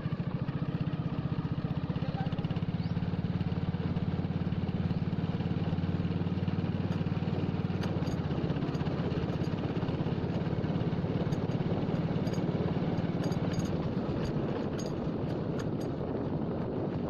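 A motorcycle engine putters steadily.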